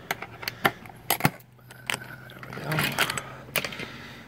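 A door knob rattles and a door creaks open.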